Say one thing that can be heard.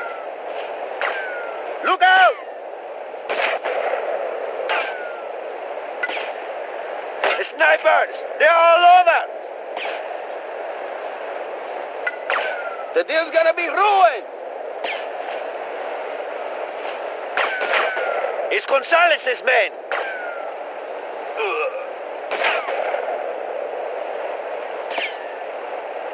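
A rifle fires sharp single shots every few seconds.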